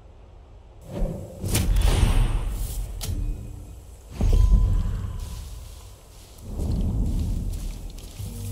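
Footsteps crunch on grass and gravel.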